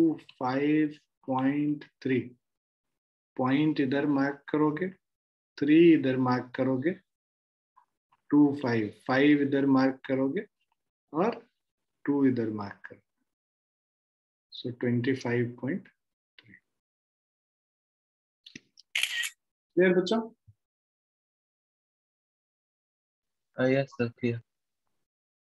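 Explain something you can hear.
A man explains calmly into a close microphone, in bursts with pauses.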